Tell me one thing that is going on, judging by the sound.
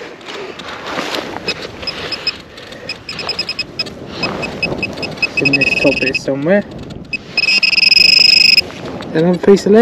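A metal detector pinpointer beeps.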